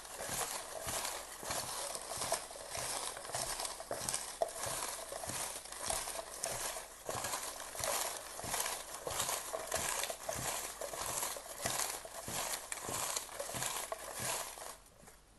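Hands rustle and stir through crinkly paper pieces close by.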